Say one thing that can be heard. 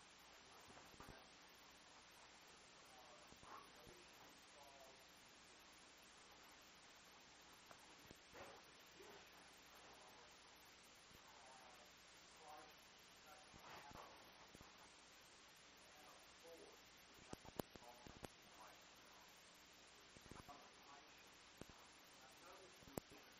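A middle-aged man speaks slowly through a lapel microphone, with long pauses.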